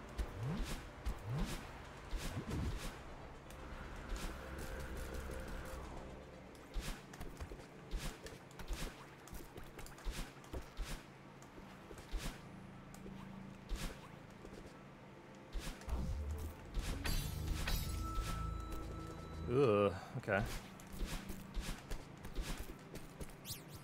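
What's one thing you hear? Quick game sound effects whoosh and click in rapid succession.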